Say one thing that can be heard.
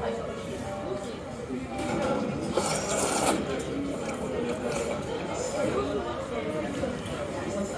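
Chopsticks dip noodles into broth with a soft splash.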